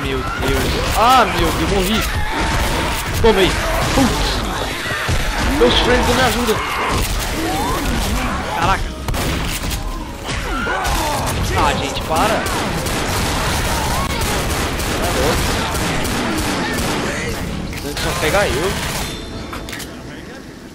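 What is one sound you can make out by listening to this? Zombies snarl and shriek up close.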